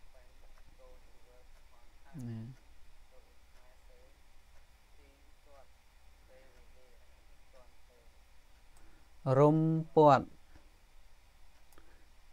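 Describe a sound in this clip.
A man speaks calmly into a microphone, reading out words and sometimes drawing them out loudly.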